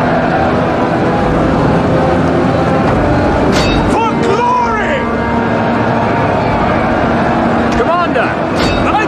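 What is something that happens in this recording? A large battle crowd roars and clashes steadily.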